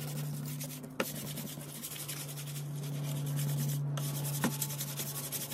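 A hand knocks lightly on a board.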